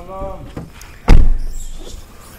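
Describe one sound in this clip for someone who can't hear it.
A car door thumps shut.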